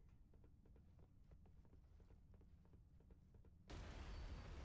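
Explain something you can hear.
Footsteps clank quickly on a metal floor.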